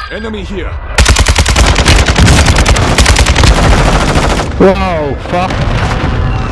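Rapid automatic gunfire blasts loudly and close.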